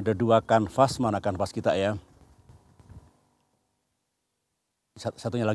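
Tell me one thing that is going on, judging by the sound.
An elderly man speaks calmly outdoors, close by.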